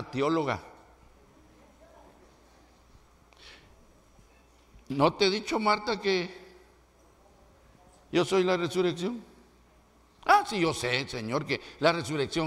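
An elderly man preaches with animation into a microphone, in short bursts with pauses.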